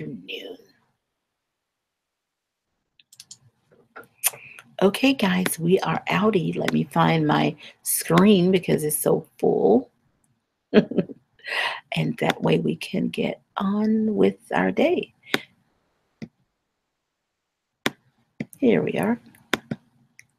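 A woman speaks calmly and warmly into a close microphone.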